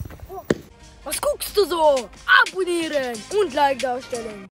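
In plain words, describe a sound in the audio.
A young boy talks with animation, close by.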